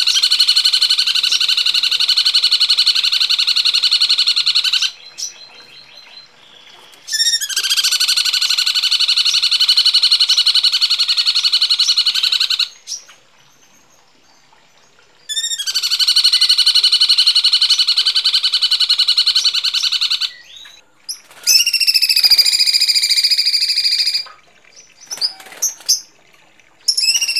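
A songbird sings loud, harsh, rapid trills in long bursts with short pauses between.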